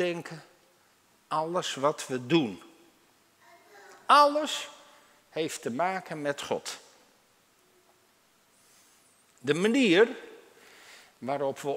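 An elderly man speaks calmly into a microphone, in phrases with pauses, in a softly echoing room.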